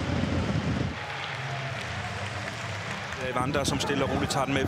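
A stadium crowd murmurs and cheers outdoors.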